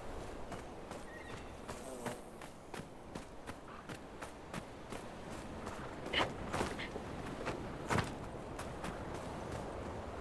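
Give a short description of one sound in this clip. Footsteps crunch steadily on sand and gravel.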